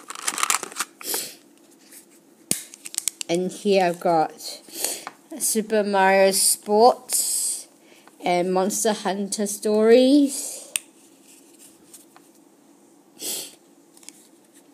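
A plastic case clicks and rattles as hands handle it.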